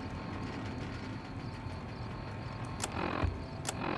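An electronic menu click sounds.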